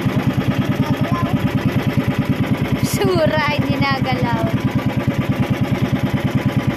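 A boat engine chugs steadily and loudly.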